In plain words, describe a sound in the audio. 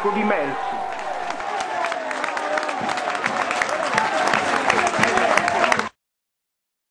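Young men shout in celebration outdoors.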